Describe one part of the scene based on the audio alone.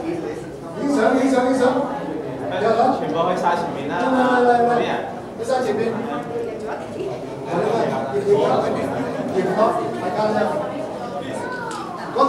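A crowd of people murmurs and chatters.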